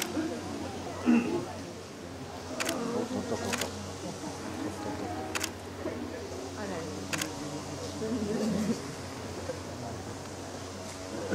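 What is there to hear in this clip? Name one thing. A fawn stirs and rustles on dry straw.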